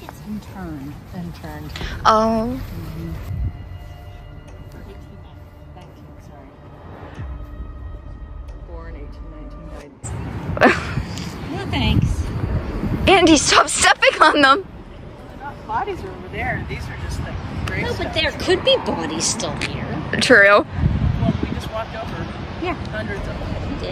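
An older woman talks casually close by.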